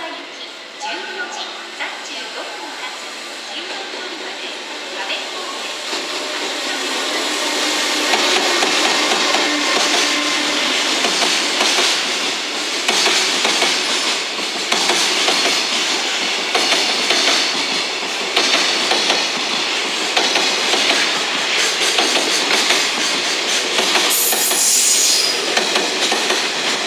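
A freight train rolls through a station, its wheels rumbling and clattering on the rails and growing louder as it passes close by.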